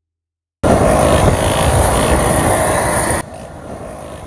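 Wind rushes loudly against the microphone.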